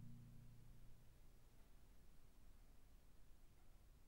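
Marimba notes ring out deeply and slowly fade.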